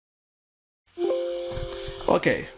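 A short electronic alert chime sounds.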